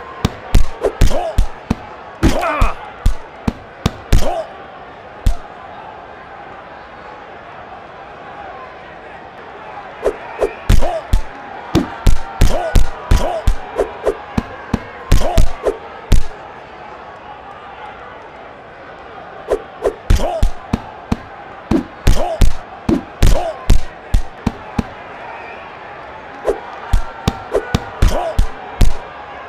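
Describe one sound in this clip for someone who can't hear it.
Punches land with sharp, quick thuds in bursts.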